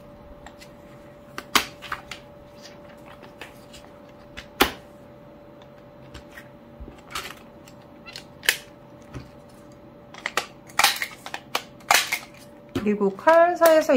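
A plastic paper tool clicks and snaps.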